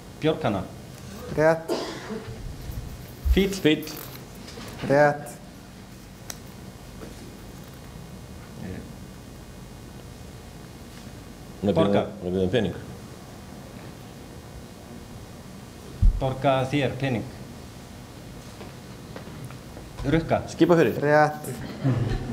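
A man speaks into a microphone in short bursts, heard through loudspeakers in a hall.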